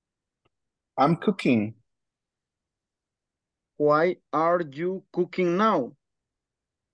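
An adult speaks in short phrases over an online call.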